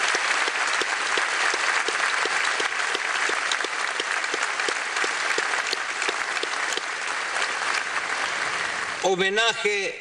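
A large crowd applauds in a big echoing hall.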